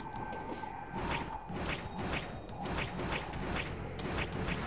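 Large wings flap with a steady beat.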